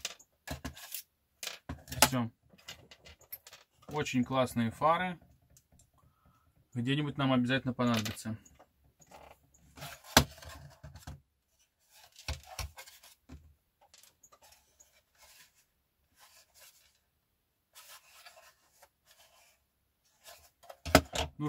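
Plastic parts click and clatter as they are handled.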